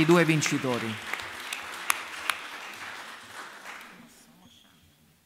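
A small group of people applauds, then the clapping fades.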